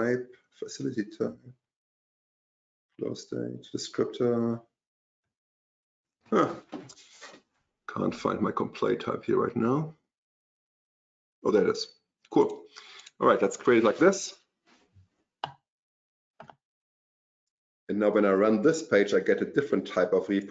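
A middle-aged man speaks calmly into a microphone, heard as if over an online call.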